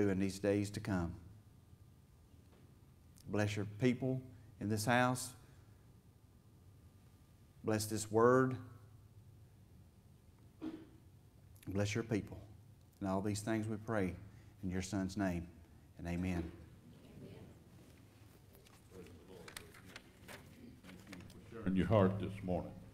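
A middle-aged man speaks calmly into a microphone, with pauses, in an echoing hall.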